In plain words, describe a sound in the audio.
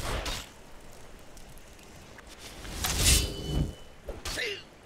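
A magic spell crackles and hisses.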